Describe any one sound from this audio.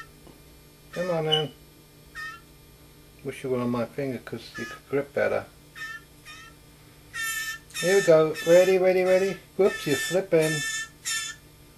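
An elderly man talks calmly up close.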